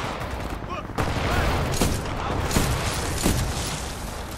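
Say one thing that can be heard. Sniper rifle shots crack loudly.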